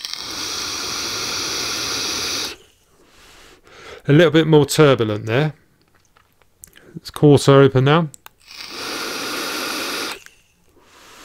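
A vape device crackles and hisses as a man draws on it close to a microphone.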